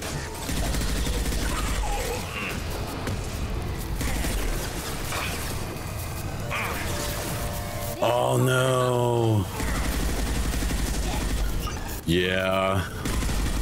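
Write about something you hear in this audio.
Gunfire and blasts rattle in quick bursts.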